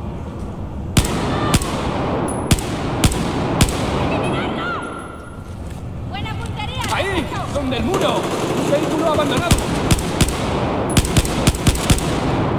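Rifle shots crack sharply, one after another, echoing in a large hall.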